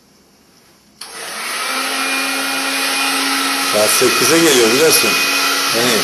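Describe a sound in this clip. A hair dryer blows with a loud, steady whir.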